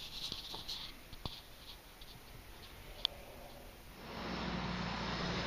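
A car engine hums low from inside a slowly moving car, growing louder near the end.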